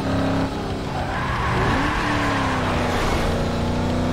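Tyres screech as a car slides through a corner.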